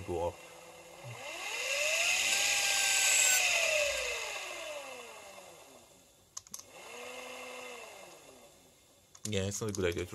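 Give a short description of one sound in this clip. A motor whirs as it speeds up to a steady whine and then winds down.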